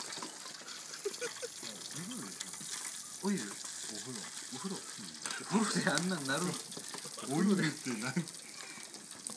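Young men talk and laugh nearby.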